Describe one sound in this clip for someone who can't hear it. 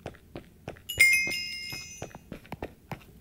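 A bright chime rings once as points are collected.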